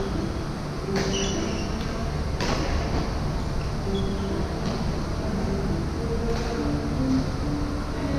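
Shuttlecocks are struck with rackets with sharp pops, echoing in a large hall.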